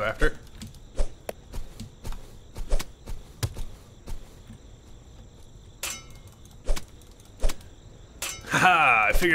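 A sword swings and strikes in short hits.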